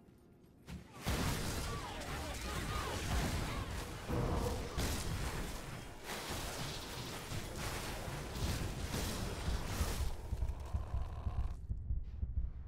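Explosions burst loudly and rapidly.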